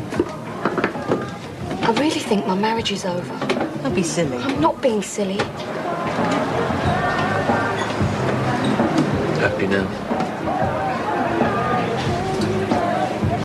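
An older woman answers in a conversational voice.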